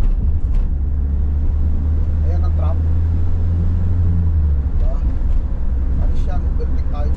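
A van's engine hums steadily from inside the cab.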